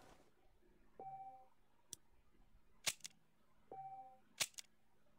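A game menu beeps softly.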